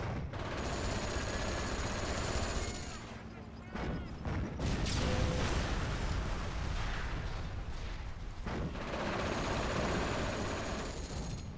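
Tank engines rumble and clank steadily.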